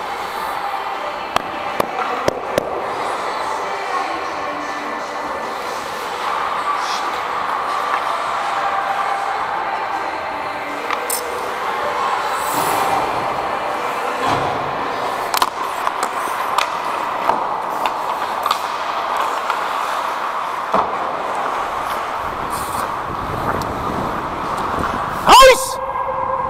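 Ice skates scrape and hiss across the ice in a large echoing rink.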